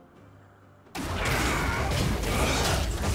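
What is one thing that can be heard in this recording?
A fiery spell bursts with a loud roar.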